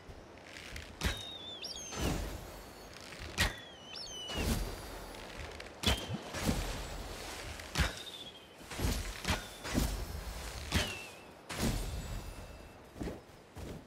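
A bow twangs as arrows are shot.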